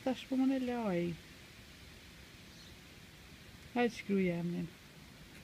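A young girl speaks in short, whiny phrases close by.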